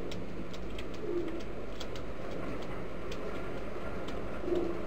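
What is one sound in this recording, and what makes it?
A pigeon coos softly close by.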